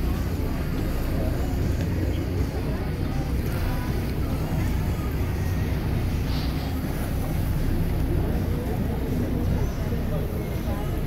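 Waves slosh and splash on open water.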